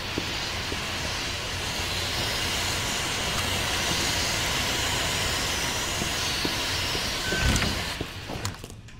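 Steam hisses loudly and steadily.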